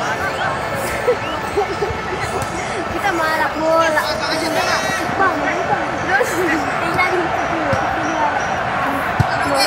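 A crowd of spectators chatters and shouts outdoors at a distance.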